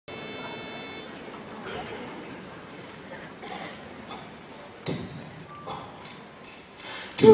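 A choir of young men and women sings together in a large echoing hall.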